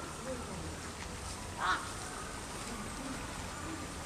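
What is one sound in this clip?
Wings flap as crows take off.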